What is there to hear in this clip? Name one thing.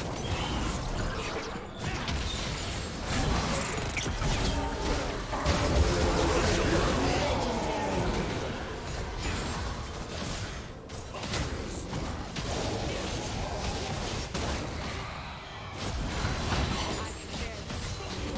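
Magical blasts and weapon clashes burst in a busy fight.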